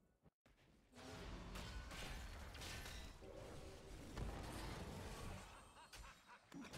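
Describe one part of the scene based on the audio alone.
Game battle effects crackle and clash with spells and weapons.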